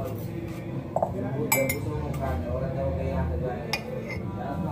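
A spoon clinks against a cup.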